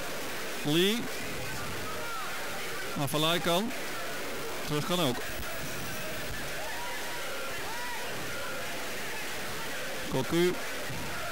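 A large stadium crowd murmurs steadily outdoors.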